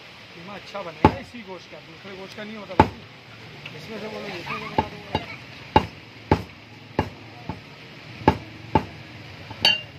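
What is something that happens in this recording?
A heavy cleaver chops meat on a wooden block with loud thuds.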